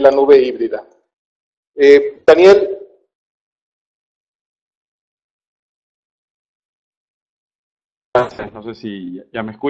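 A man speaks calmly into a microphone over an online call, with long pauses.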